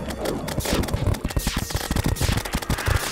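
A laser gun fires in rapid zapping bursts.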